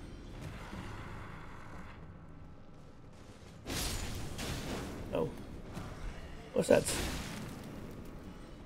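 A sword slashes and strikes with sharp hits.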